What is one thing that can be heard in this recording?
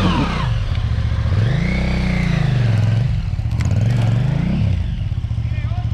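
A motorcycle engine revs up and down loudly nearby.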